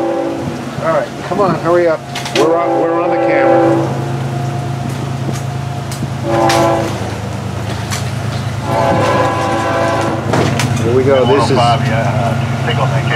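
Heavy rain falls outdoors.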